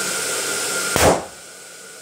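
Balloons burst with a loud bang all at once.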